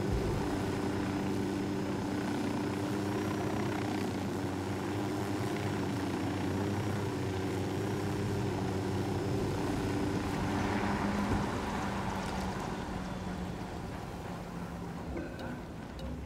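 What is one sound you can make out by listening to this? A helicopter's rotor and engine drone steadily, then wind down.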